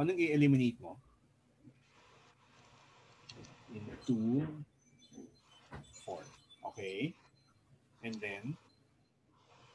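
A man explains calmly, heard through a microphone.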